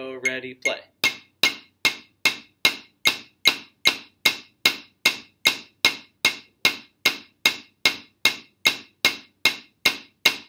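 Drumsticks strike a practice pad on a drum in a slow, steady beat.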